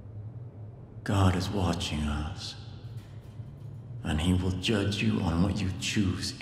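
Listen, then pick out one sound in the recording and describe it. A man speaks slowly and solemnly, close by.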